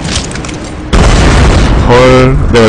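A heavy crate crashes onto a metal deck with a loud boom.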